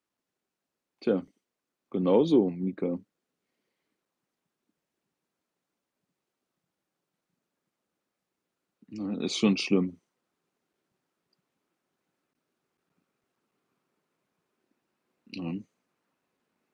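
An older man speaks briefly and quietly close by, with long pauses.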